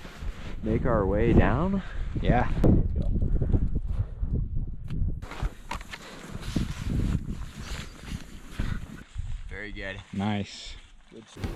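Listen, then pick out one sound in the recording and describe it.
Skis scrape and crunch on snow.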